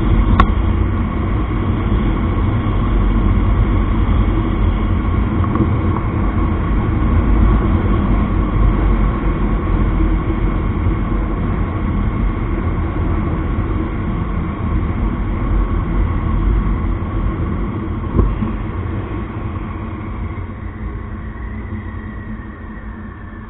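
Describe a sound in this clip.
A motorcycle engine hums steadily as the bike rides along, slowing down near the end.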